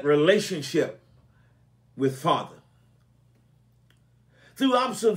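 An elderly man speaks calmly and slowly into a microphone, with pauses between phrases.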